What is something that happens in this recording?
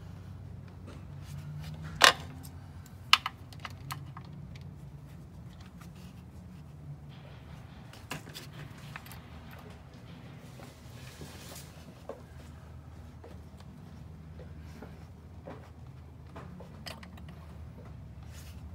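Metal parts clink and knock under an engine hood.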